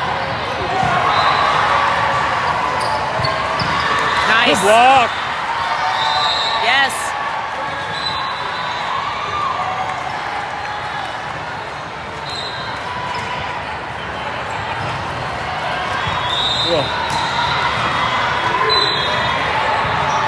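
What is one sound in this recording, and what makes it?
Young women players shout calls to each other.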